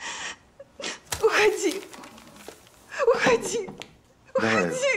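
A young woman shouts in distress.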